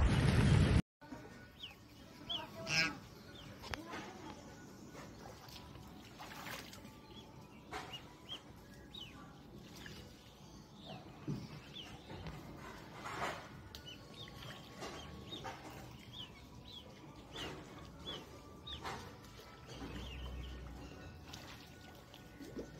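Geese paddle and splash gently in shallow water.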